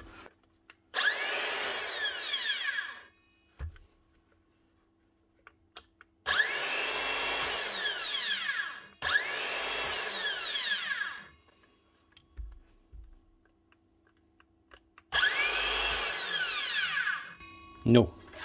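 A circular saw whirs up to speed in short bursts and winds down.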